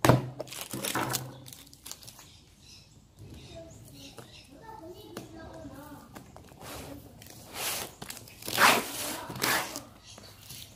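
Packing tape crackles as it is peeled off and crumpled.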